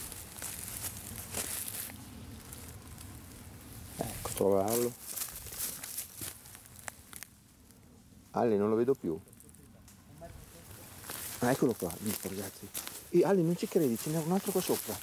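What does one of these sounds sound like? Footsteps crunch and rustle through dry leaves on the ground.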